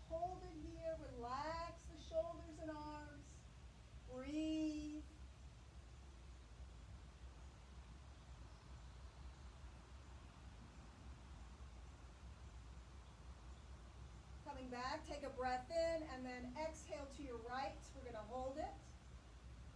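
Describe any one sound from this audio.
A young girl speaks calmly nearby.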